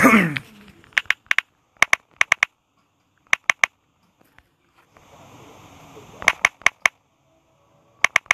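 Keyboard keys click in quick bursts of taps.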